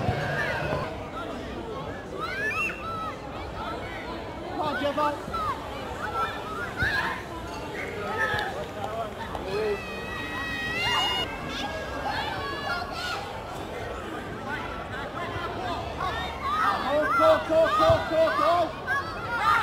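Children call out to each other across an open field.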